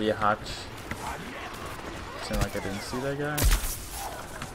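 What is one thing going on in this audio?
A blaster fires sharp electric zaps.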